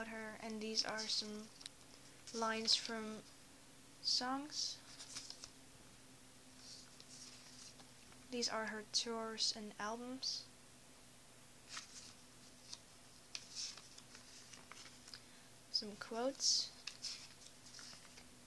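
Paper pages rustle and flip as they are turned by hand.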